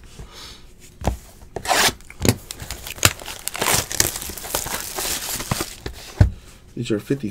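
Plastic wrap crinkles and tears.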